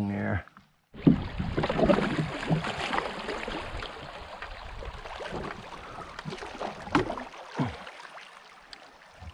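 A plastic kayak hull scrapes over a shallow gravel riverbed.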